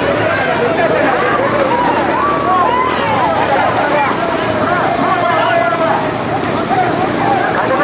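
A roadside crowd shouts and cheers outdoors.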